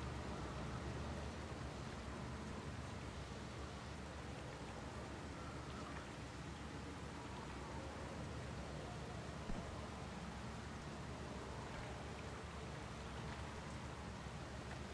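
Heavy rain and wind roar steadily.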